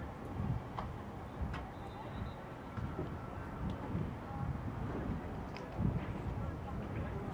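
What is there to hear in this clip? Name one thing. Wind buffets outdoors with low rumbling gusts.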